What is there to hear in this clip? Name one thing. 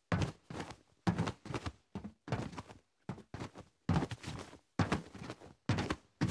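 Quick scrambling thuds sound in bursts as a figure climbs.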